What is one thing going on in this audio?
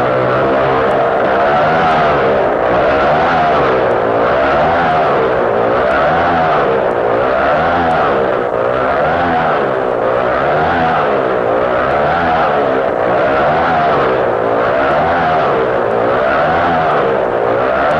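A motorcycle engine roars, its pitch rising and falling over and over as it circles.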